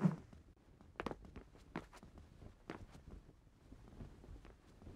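Light footsteps land on a hard floor.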